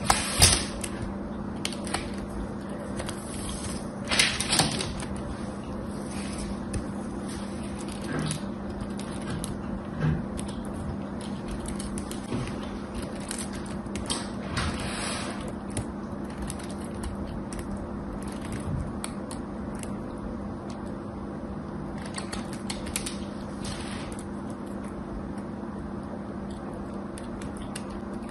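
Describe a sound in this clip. A knife shaves and scrapes thin curls from a bar of soap, close by.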